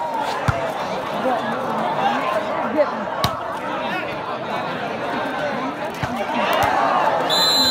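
A ball is struck with sharp thuds.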